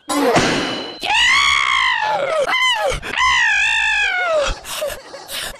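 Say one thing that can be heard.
A cartoon creature screams loudly in pain.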